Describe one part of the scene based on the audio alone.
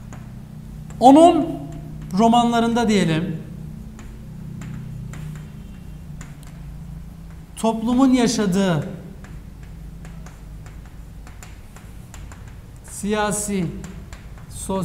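A young man speaks in short phrases nearby.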